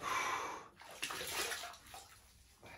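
A man splashes water onto his face.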